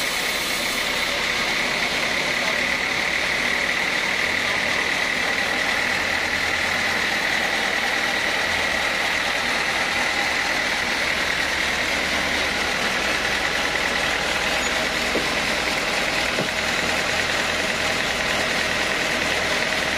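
A band saw whines loudly and steadily as it cuts through wood.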